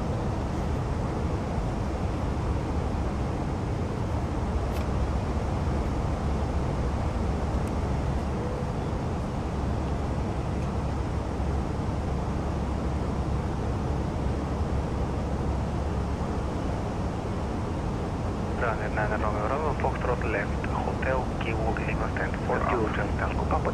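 Jet engines drone steadily with a low hum.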